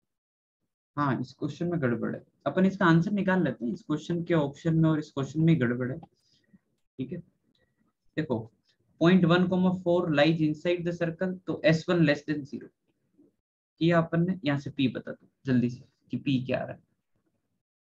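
A man speaks calmly into a close microphone, explaining.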